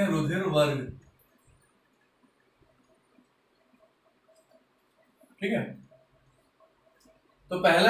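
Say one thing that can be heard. A man speaks in short bursts, calmly.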